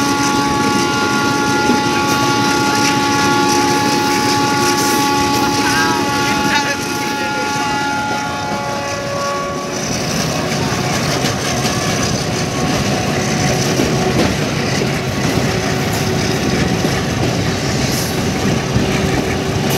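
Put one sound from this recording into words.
A passenger train rumbles past close by, its wheels clattering on the rails.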